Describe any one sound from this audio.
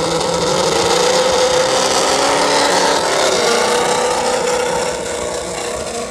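A small electric motor whines as a toy truck drives on pavement.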